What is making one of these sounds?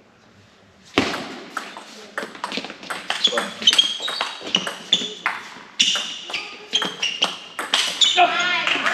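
A table tennis ball clicks back and forth off paddles and the table in a large hall.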